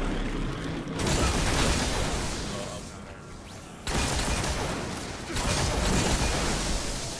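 Rapid gunfire crackles and booms up close.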